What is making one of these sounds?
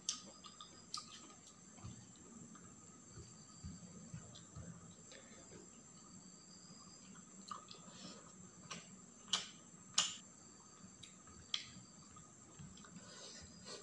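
Fingers squelch and mix soft rice on a metal plate.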